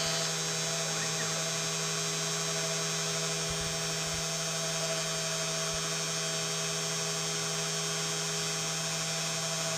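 A milling spindle whines steadily as it cuts plastic.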